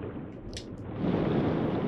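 A soft whooshing puff bursts out.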